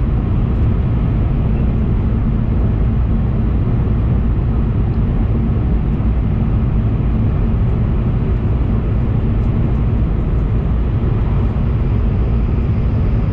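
A train rumbles steadily as it moves along.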